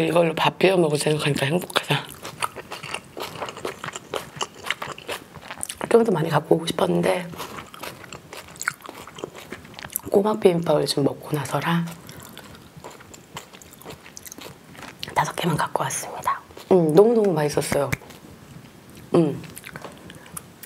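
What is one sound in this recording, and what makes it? A young woman speaks animatedly and close to a microphone.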